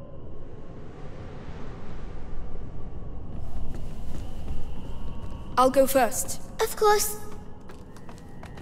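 Footsteps thud on creaky wooden boards.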